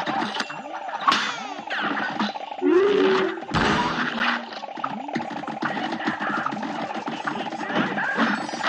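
Rapid cartoon gunfire pops and crackles without pause.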